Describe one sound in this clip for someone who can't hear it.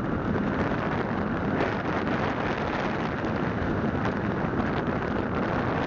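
Wind rumbles against the car's front.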